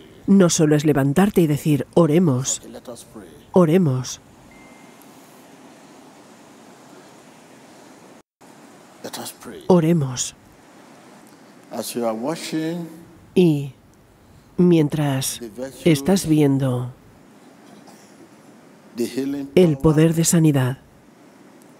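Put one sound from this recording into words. A man preaches into a microphone with emphatic pauses, echoing in a large hall.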